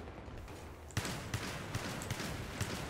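Rapid gunshots ring out in quick bursts.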